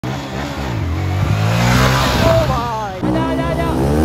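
A motorcycle engine revs loudly as the bike rides on its back wheel.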